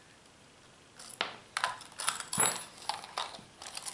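Small metal parts clink and rattle as they are handled on a tabletop.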